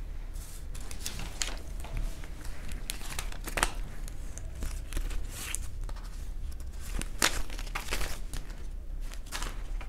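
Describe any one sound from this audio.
Banknotes rustle as they are handled.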